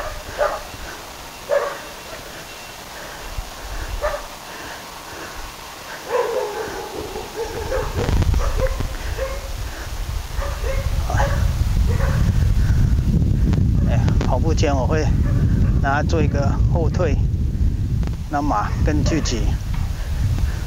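A horse trots softly on sand in the distance.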